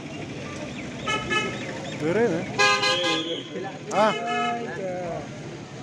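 Car horns honk several times.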